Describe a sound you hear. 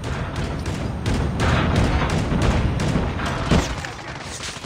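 Heavy guns fire rapidly in loud bursts.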